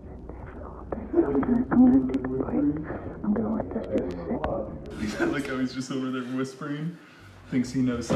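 A young man speaks casually, close to the microphone.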